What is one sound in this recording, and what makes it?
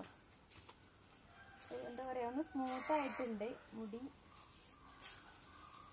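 A comb scrapes through long hair.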